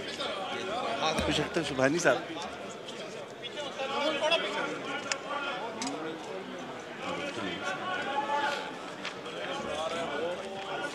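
Several men talk at once in a large echoing hall.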